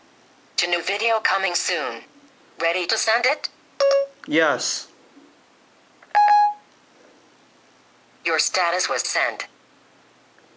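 A phone's synthetic voice speaks through a small speaker.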